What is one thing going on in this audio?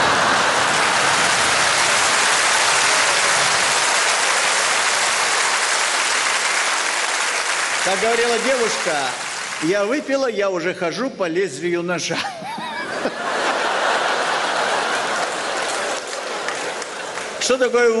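An audience laughs and applauds loudly in a large hall.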